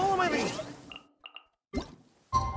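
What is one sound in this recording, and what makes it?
A soft electronic chime sounds.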